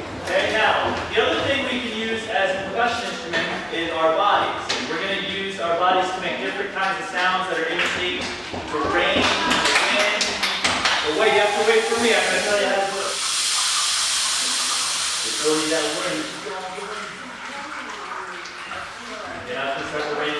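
A man speaks with animation in a large echoing hall.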